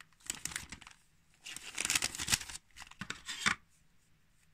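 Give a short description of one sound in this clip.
A plastic bag crinkles as it is handled up close.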